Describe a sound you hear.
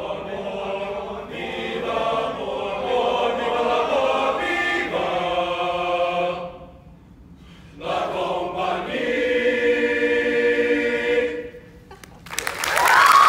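A male choir sings together in a large hall.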